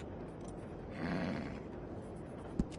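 A horse snorts nearby.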